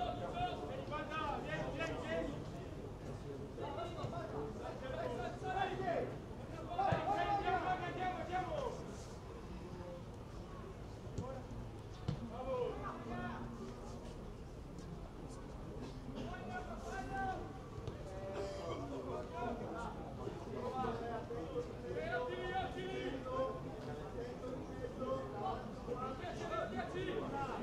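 Players shout to each other across an open pitch outdoors.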